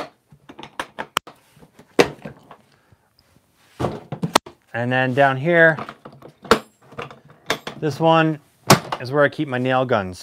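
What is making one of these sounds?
Plastic toolboxes click and clack as their latches are worked and they are pulled apart.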